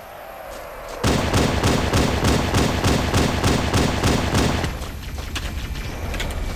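Video game gunfire cracks in quick bursts.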